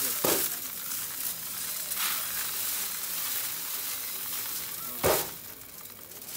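Grain rustles and rattles on a metal sieve under a hand.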